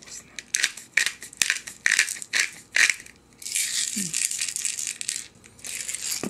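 A spice bottle rattles as it is shaken.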